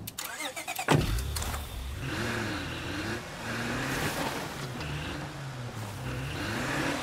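A car engine starts and runs, revving as the car drives off.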